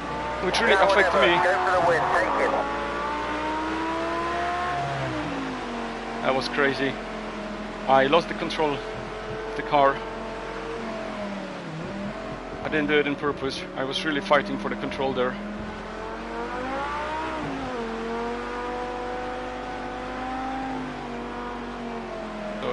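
A racing car engine revs up and down, shifting through gears.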